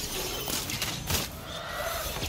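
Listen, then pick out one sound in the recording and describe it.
A magic weapon fires with sharp zapping bursts.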